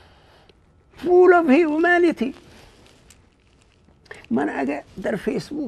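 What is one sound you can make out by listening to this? A man speaks animatedly, close to a microphone.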